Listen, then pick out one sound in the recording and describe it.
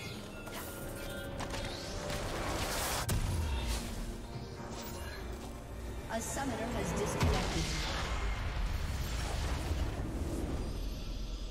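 Game spell effects crackle and whoosh in quick bursts.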